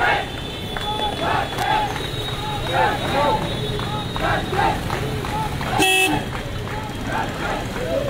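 A motorcycle engine runs as it rides past.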